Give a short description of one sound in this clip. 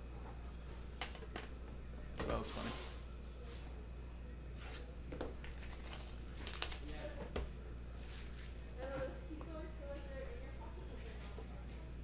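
Cardboard boxes tap and slide against a metal tin.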